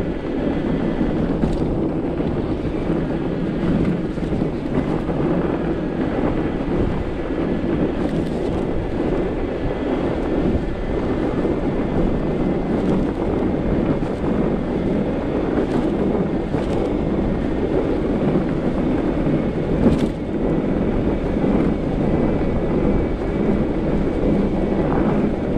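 An electric bicycle motor hums softly.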